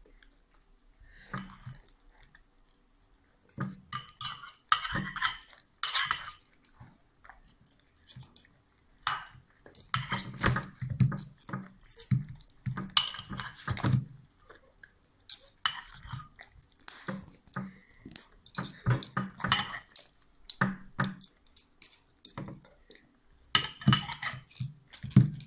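Metal cutlery clinks and scrapes against a ceramic bowl.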